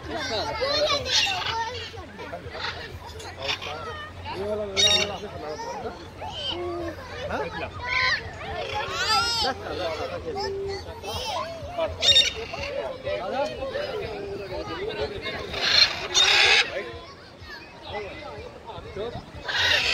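Parrots squawk and screech loudly nearby.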